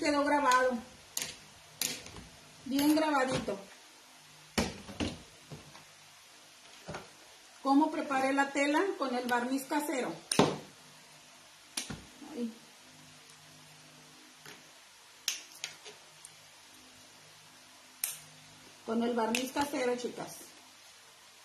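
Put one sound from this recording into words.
A woman speaks calmly and close by, explaining in short bursts.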